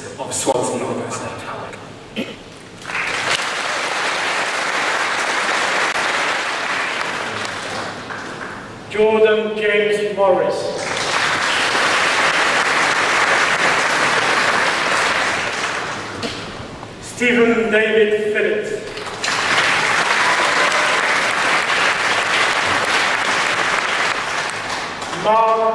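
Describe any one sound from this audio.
A woman reads out over a loudspeaker in a large echoing hall.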